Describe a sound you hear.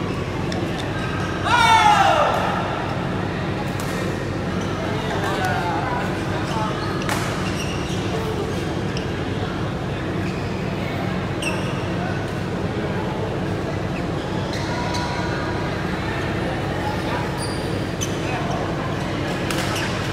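Shuttlecocks are struck with rackets with sharp pops.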